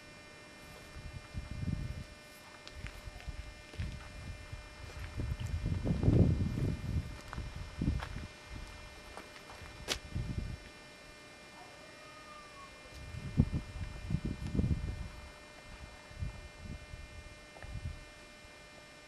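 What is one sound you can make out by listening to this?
Wind gusts rumble outdoors, coming and going.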